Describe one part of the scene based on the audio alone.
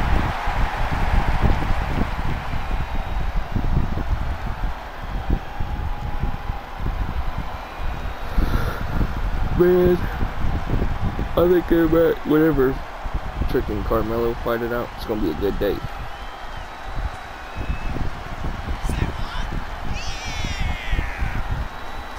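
A large crowd cheers in a big echoing arena.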